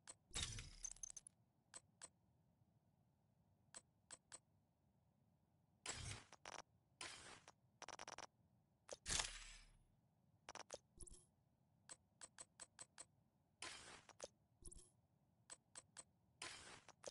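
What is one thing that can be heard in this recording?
Short menu clicks and whooshes sound as options change.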